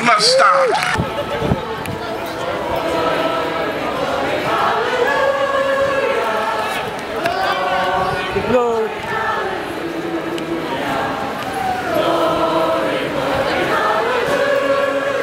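A crowd of marchers chants and sings together outdoors.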